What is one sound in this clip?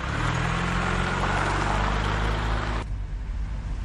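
A car engine hums as the car rolls past close by.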